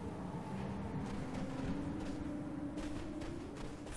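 Footsteps tread on dry dirt.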